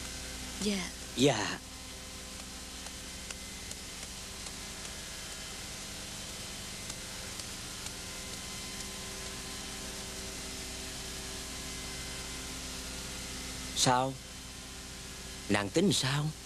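A young woman speaks in short, emotional bursts close by.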